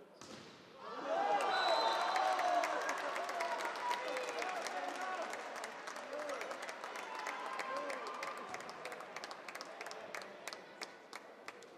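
A crowd in a large echoing hall cheers loudly.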